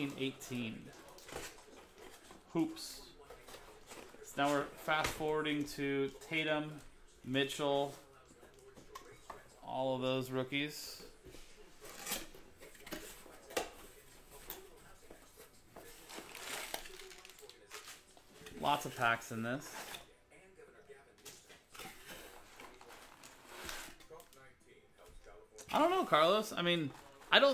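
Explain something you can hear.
Card packs rustle and slide as they are handled.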